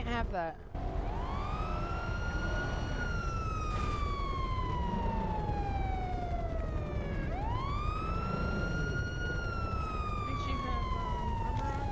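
A police siren wails up and down nearby.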